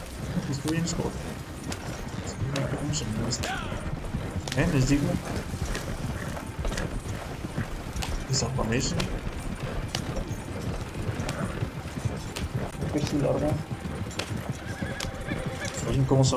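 Wagon wheels rumble and rattle over a dirt track.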